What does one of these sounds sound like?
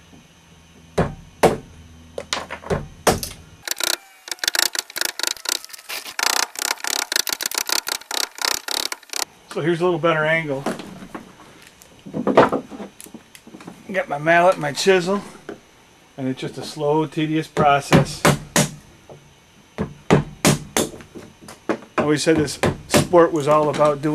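A mallet knocks sharply on wood.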